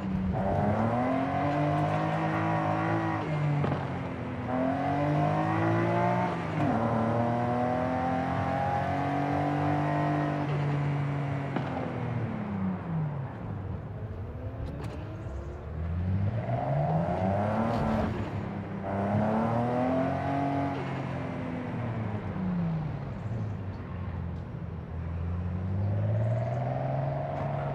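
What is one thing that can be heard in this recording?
A car engine revs up and down as it shifts through the gears.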